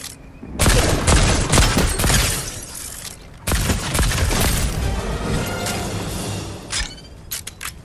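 Gunshots fire in loud rapid bursts.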